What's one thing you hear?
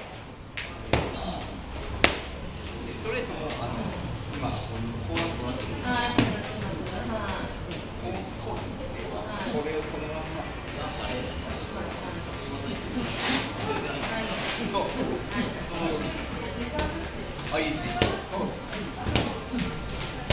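Boxing gloves thud sharply against pads in quick bursts.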